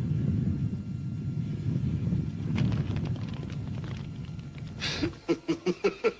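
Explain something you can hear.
Flames roar as a newspaper burns.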